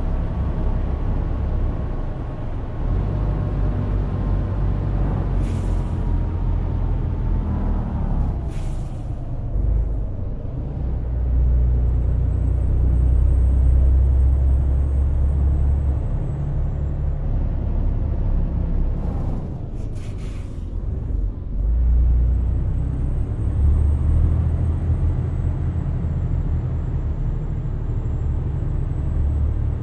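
A truck's tyres hum on the road.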